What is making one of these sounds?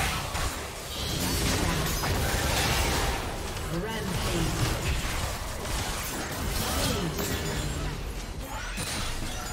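Magic blasts and hits crackle and whoosh in a busy fight.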